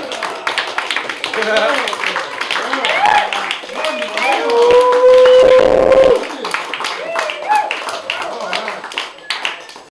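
A crowd of young men and women chatter and shout close by.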